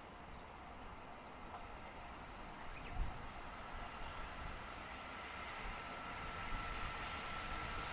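A train approaches along the tracks from far off, its rumble and whine slowly growing louder.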